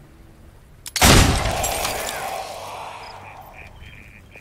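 A loud crash bursts out and rings away slowly.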